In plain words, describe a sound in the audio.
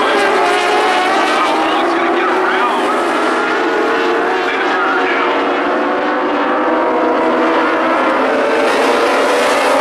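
Race car engines roar loudly around a track.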